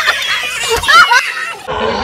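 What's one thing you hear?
Young men laugh and shout outdoors.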